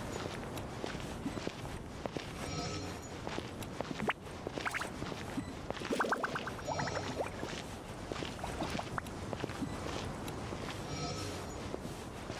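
Footsteps walk steadily on sand and stone.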